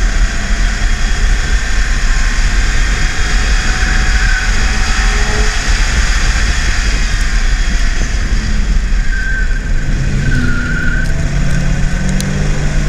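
Wind rushes steadily around a moving car.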